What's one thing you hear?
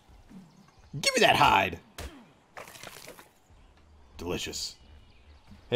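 A stone hatchet chops into a carcass with heavy wet thuds.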